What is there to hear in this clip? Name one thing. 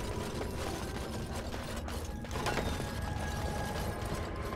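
A magical spell shimmers and tinkles.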